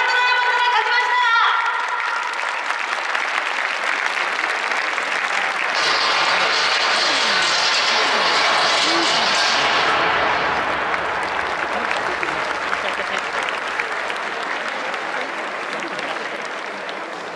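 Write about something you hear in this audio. A large stadium crowd cheers and chants loudly in the open air.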